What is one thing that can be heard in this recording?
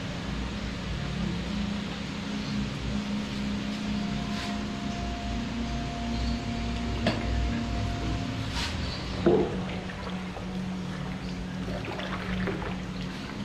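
A metal ladle clinks and scrapes against a metal pot.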